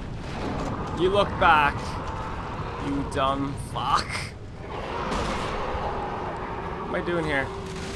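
A monster roars and snarls loudly.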